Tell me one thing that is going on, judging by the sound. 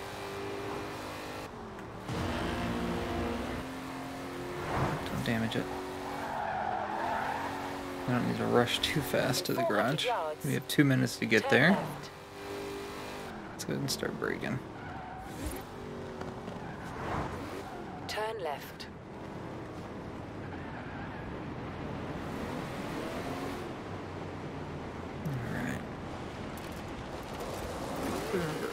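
A car engine roars as it speeds up and changes gear, then eases off while slowing down.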